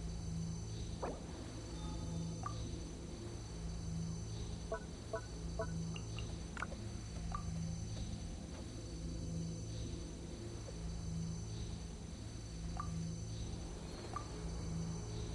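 Soft menu clicks and chimes sound now and then.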